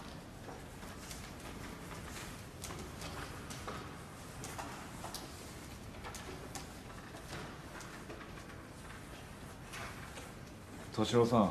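A wheelchair rolls softly along a hard floor.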